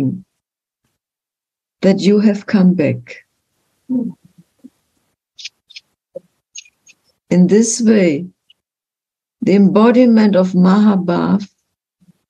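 An elderly woman speaks calmly in short bursts over an online call.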